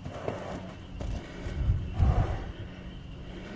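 A horse's hooves thud on soft sand as it trots.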